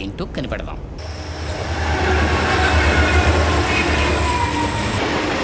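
A train rumbles along its tracks in the distance.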